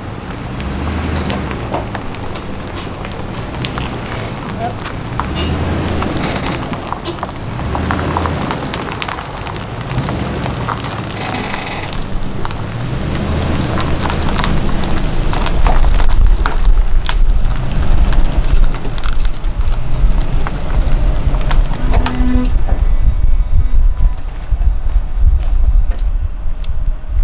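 An engine rumbles as a vehicle slowly reverses closer.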